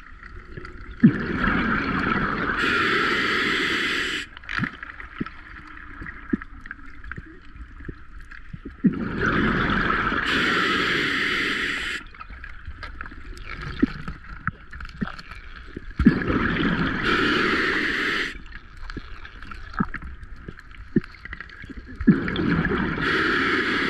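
Bubbles from a diver's regulator rush and gurgle loudly in bursts, close by underwater.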